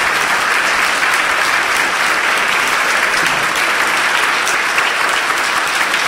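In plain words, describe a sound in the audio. An audience applauds steadily in a large echoing hall.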